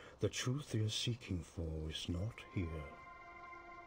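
A man speaks slowly in a deep, gravelly voice.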